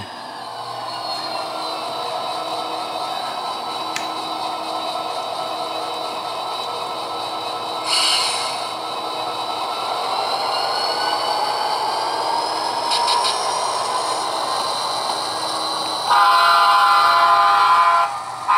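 A model diesel locomotive engine hums steadily and rises in pitch as the locomotive pulls away.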